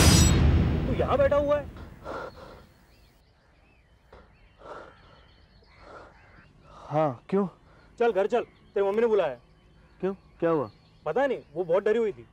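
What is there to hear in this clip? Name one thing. A young man speaks earnestly, close by.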